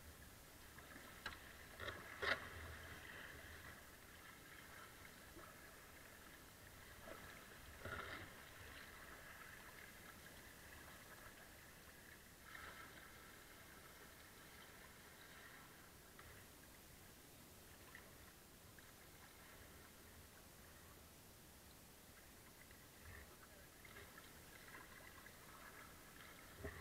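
A kayak paddle dips and splashes in calm river water.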